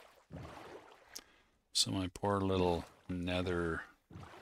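Oars splash softly in water as a small boat is rowed.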